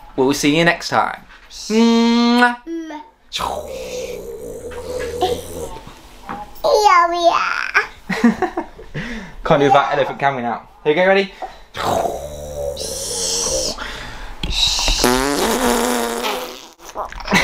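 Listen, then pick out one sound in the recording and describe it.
A little girl talks and squeals in a high voice.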